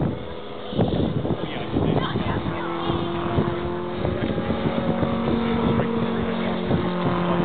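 A small plane's engine drones overhead, rising and falling in pitch.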